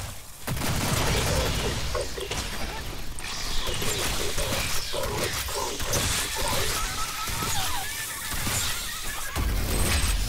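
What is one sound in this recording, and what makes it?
Creatures screech and shriek.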